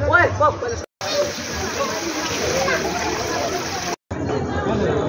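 Water pours down a stone cascade.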